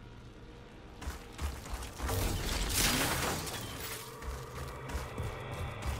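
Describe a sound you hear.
Heavy armoured footsteps thud on stone.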